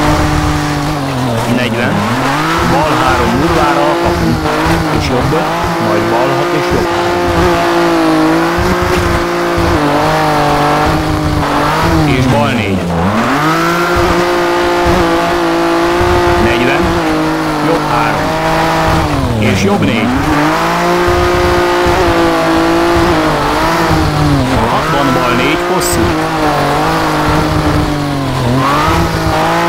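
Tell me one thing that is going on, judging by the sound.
A rally car engine roars, revving up and dropping sharply with each gear change.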